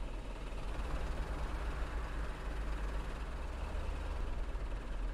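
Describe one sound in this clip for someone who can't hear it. A diesel single-deck bus drives along, its engine droning.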